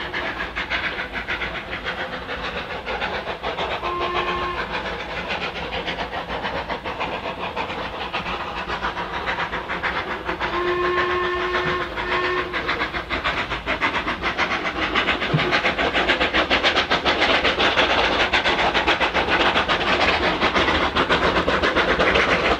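A steam locomotive chuffs steadily as it approaches, growing louder.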